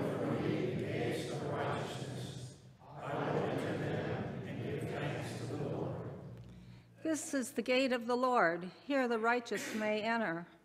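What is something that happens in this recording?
An elderly woman reads aloud calmly into a microphone.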